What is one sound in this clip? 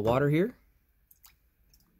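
Water pours into a mug.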